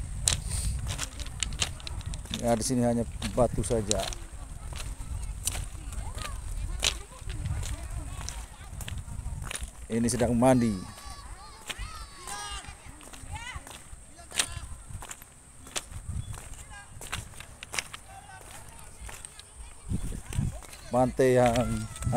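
Footsteps crunch on loose pebbles.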